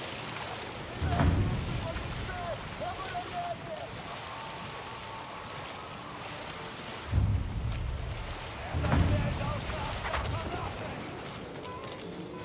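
Heavy explosions boom.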